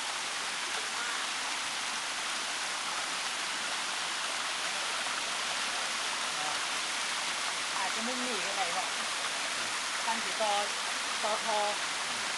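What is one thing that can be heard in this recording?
A small waterfall splashes and rushes steadily close by.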